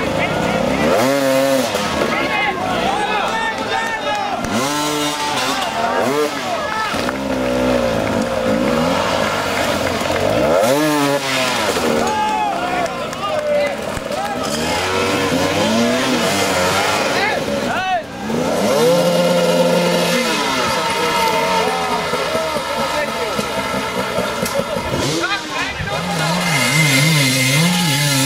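A dirt bike engine revs hard, repeatedly rising and falling in pitch.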